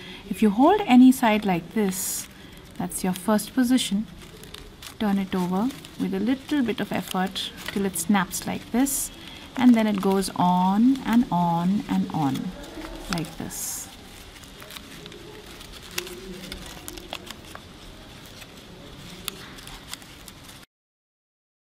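Paper crinkles and rustles.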